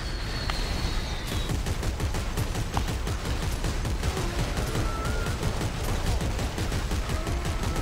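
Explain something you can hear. A futuristic gun fires in rapid bursts.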